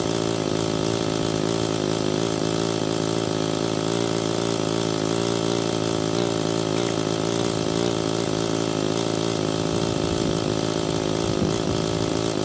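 A petrol string trimmer engine drones steadily up close.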